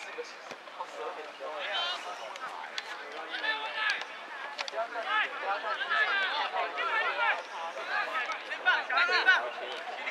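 Players shout to each other as they run.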